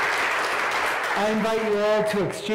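A man speaks loudly to the crowd.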